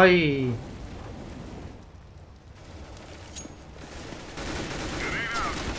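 Flames of an incendiary roar and crackle.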